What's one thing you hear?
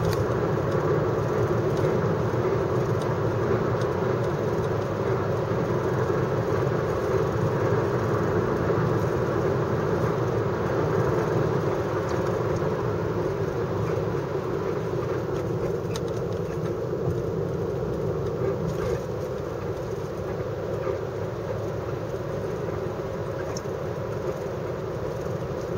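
Tyres roar on asphalt.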